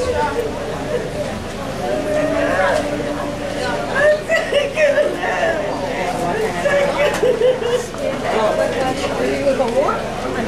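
Footsteps shuffle on a concrete floor.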